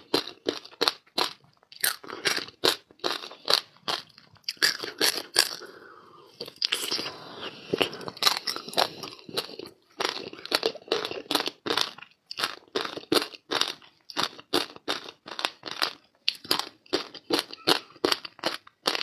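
A woman crunches and chews ice close to the microphone.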